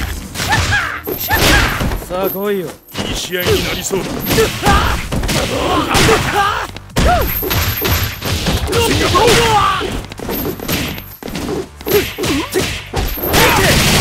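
Punches and kicks land with hard thuds and smacks.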